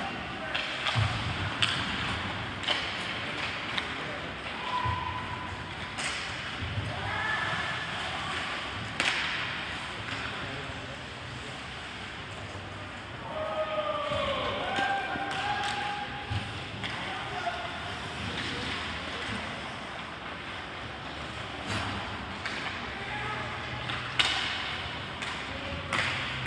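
Hockey sticks clack sharply against a puck now and then.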